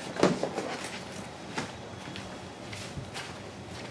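Footsteps thud on a hard floor as a young man walks away.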